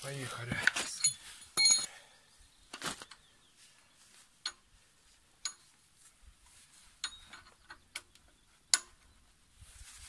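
Metal tools clink and scrape against a wheel hub.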